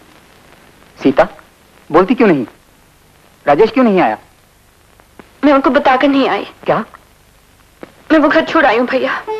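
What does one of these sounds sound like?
A man speaks tensely.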